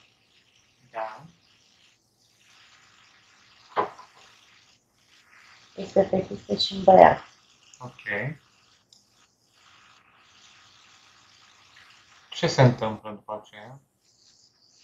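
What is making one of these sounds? A young man speaks in short bursts over an online call.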